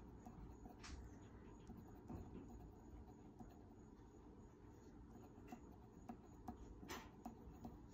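A pencil taps and scratches softly on paper.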